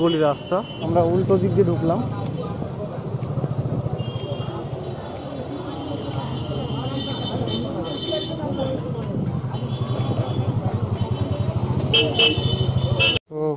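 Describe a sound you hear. A motorbike engine idles nearby.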